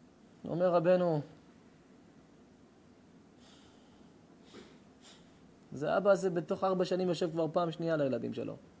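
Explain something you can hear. A middle-aged man speaks calmly and with expression into a microphone, pausing between phrases.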